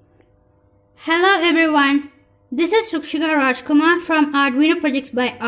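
A song with a singing voice plays from small laptop speakers.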